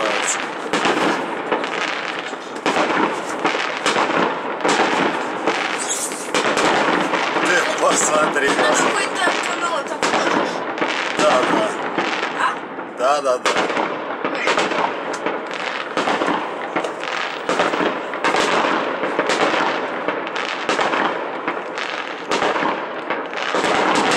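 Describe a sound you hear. Fireworks burst and crackle in rapid, continuous bangs.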